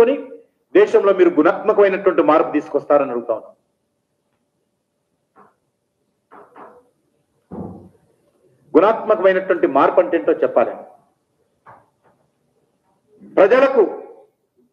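A man speaks into a microphone with animation, in bursts with pauses.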